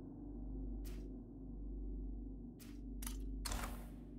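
A short menu click sounds as a marker is set.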